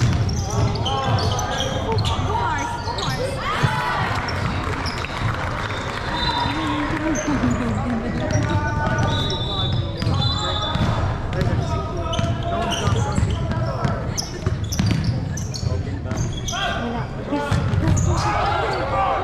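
Sneakers squeak sharply on a hardwood court, echoing in a large hall.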